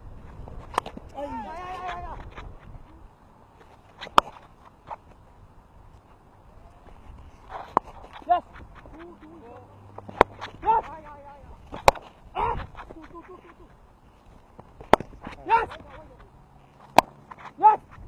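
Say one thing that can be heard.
A cricket bat sharply strikes a ball again and again.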